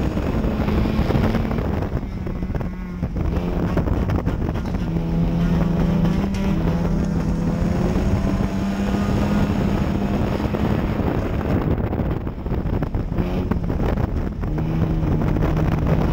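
A race car engine roars loudly from close by.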